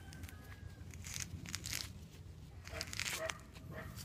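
Leaves rustle as a hand pulls fruit from a tree.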